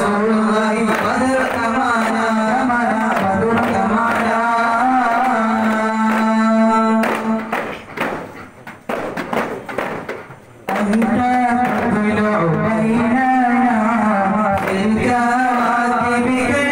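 A group of young men sings together in unison.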